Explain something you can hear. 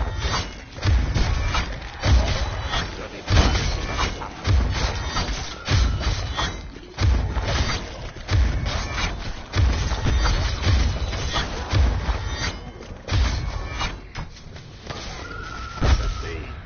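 A blade swings and slashes with heavy thuds.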